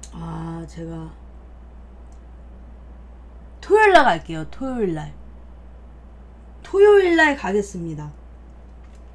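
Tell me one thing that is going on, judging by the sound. A young woman speaks close to a microphone with animation, her voice rising and falling in short bursts.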